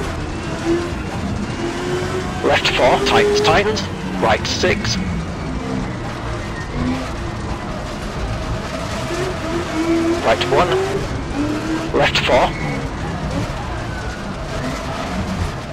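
A rally car engine roars steadily, its pitch rising and falling with the revs.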